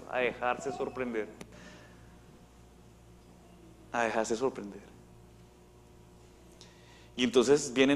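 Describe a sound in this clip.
A man speaks with animation through a microphone, in an echoing hall, pausing between phrases.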